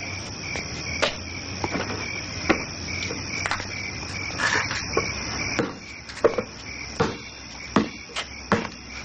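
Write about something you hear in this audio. Footsteps tread on hard pavement outdoors.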